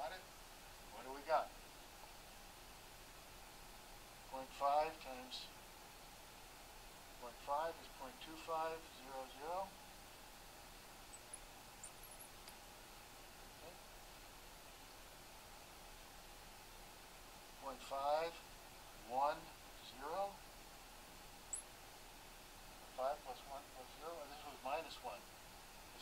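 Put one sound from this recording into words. An elderly man speaks calmly in short phrases with long pauses.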